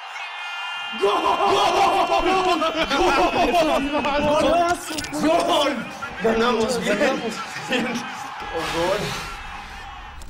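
Young men shout and cheer excitedly.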